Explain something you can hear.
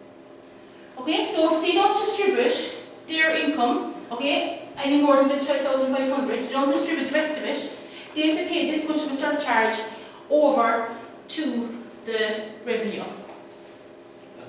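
A woman speaks clearly and steadily close by, explaining.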